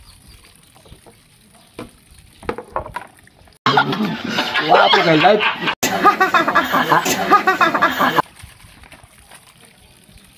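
Dishes clink in water as they are washed.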